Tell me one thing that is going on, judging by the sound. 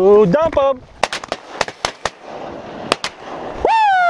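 A shotgun fires several sharp shots outdoors.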